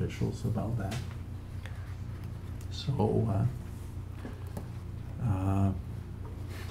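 An elderly man speaks calmly and haltingly into a microphone.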